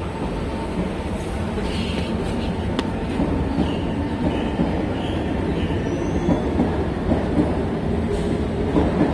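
A train rumbles along elevated tracks, growing louder.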